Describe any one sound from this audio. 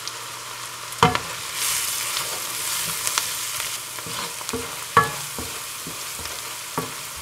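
A wooden spoon scrapes and knocks against a pan.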